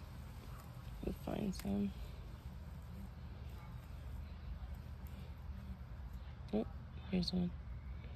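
Fingers rustle through loose compost and dry grass.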